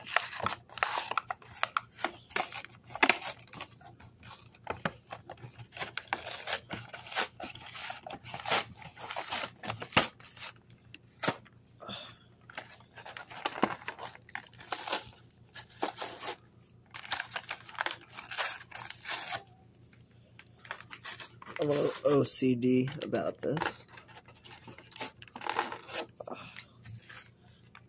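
Plastic packaging crinkles and crackles as hands handle it.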